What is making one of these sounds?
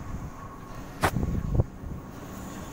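A metal latch clacks.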